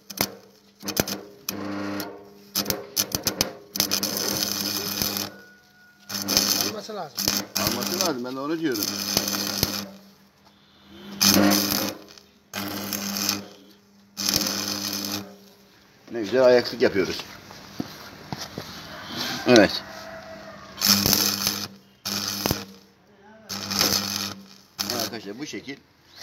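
An electric welding arc crackles and buzzes in short bursts.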